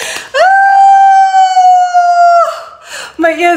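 A woman sings a long high note, close to the microphone.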